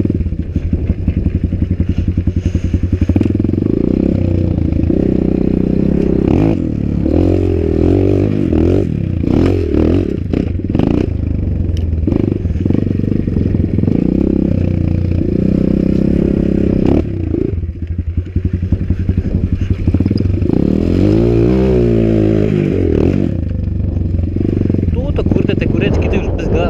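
A dirt bike engine revs hard while climbing steep hills.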